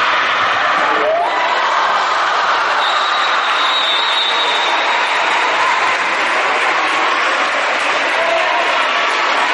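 Shoes squeak on a hard floor in an echoing hall.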